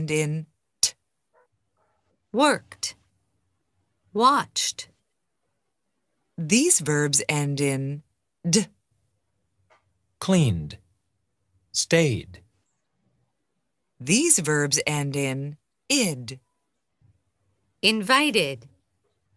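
A man speaks clearly in short bursts over an online call, with pauses between words.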